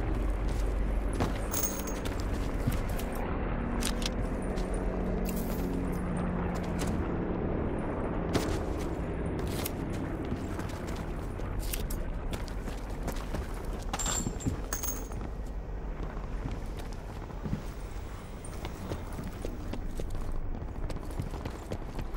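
Footsteps thud quickly across floors and grass.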